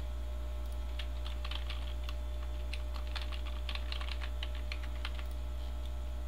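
Keyboard keys click in quick bursts of typing.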